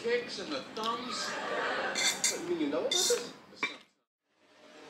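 A fork scrapes and clinks against a ceramic bowl.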